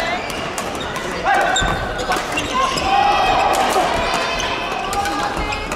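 Many players call out and chatter in a large echoing hall.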